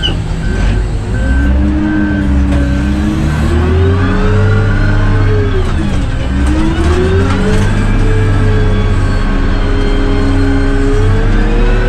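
A truck drives past on a dirt road.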